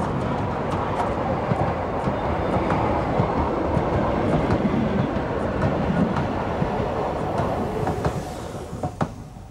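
Train carriages rumble and clatter past close by on the rails.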